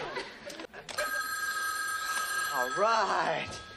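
A telephone rings nearby.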